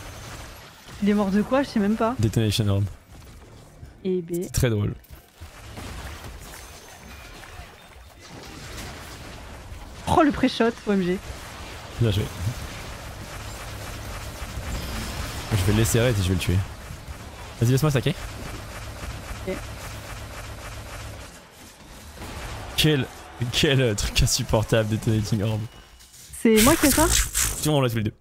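A young man talks with animation close to a microphone, in bursts.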